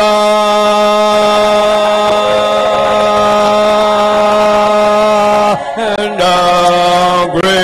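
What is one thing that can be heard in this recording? A man sings long, held notes loudly through a microphone.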